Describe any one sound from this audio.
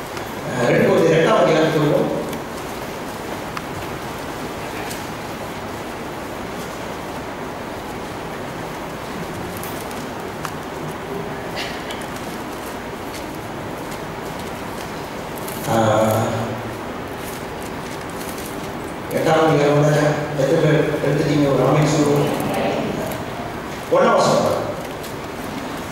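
A woman prays aloud in bursts, her voice echoing in a hall.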